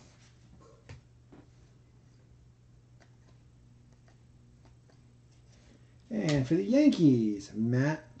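Trading cards softly rustle and click as they are sorted by hand.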